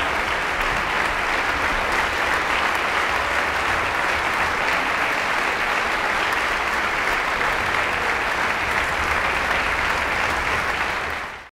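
A large audience applauds steadily in a big hall.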